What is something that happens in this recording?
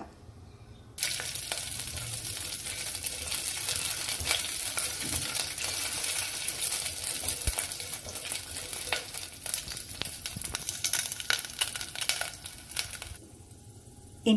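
Seeds and spices sizzle and crackle in hot oil in a pan.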